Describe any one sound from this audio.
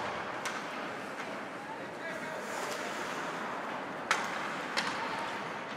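Ice skates scrape and hiss across an ice rink.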